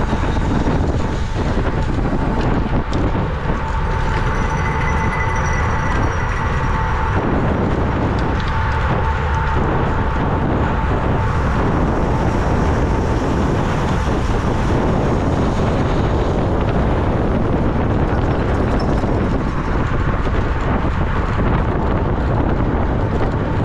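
Strong wind roars steadily across a microphone on a moving bicycle.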